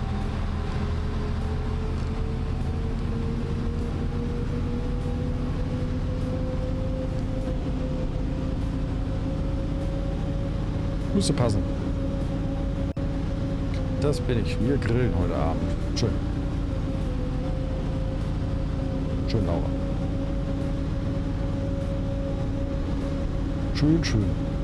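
A tractor engine hums steadily and slowly rises in pitch.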